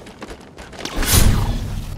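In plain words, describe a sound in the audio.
A rifle fires a short burst.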